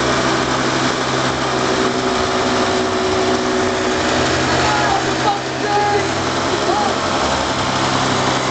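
A small motorcycle engine revs loudly and roars close by.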